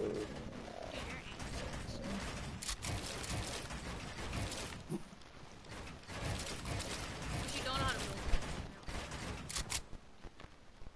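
Footsteps thud quickly on hollow panels.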